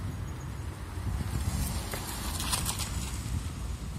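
A small car engine hums as the car rolls slowly over paving stones.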